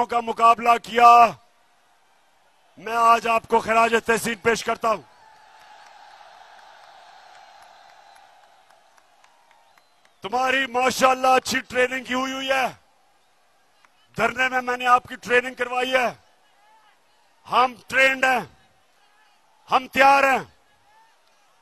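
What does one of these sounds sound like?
A man speaks forcefully into a microphone through loudspeakers.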